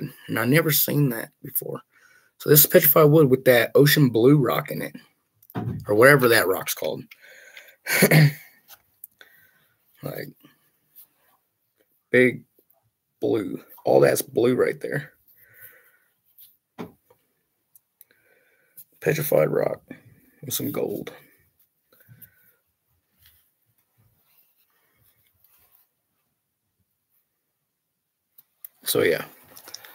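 A young man talks calmly and close up, with pauses.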